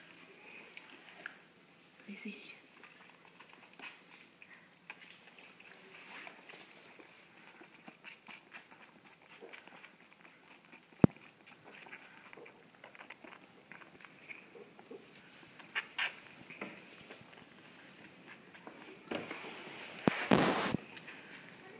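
A lamb sucks milk from a bottle.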